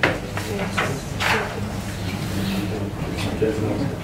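Paper rustles as a page is handled.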